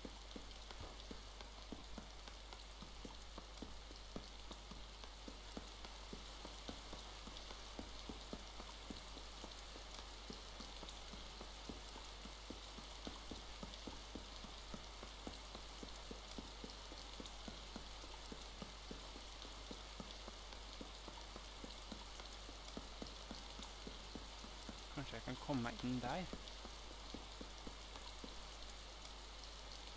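Footsteps crunch quickly over dry grass and dirt.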